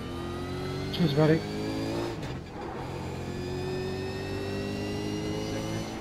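A racing car engine roars steadily, dipping briefly as it shifts gear.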